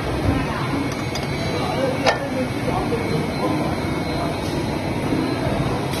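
A wrench clicks and scrapes against a metal nut.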